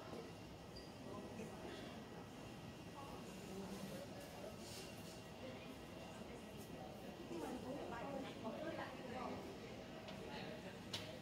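Women chat quietly nearby in a large echoing hall.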